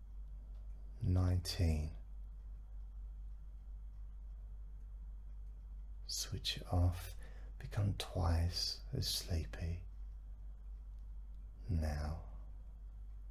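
A man speaks slowly and calmly into a close microphone, with long pauses.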